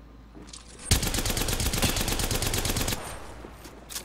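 A gun fires a rapid burst.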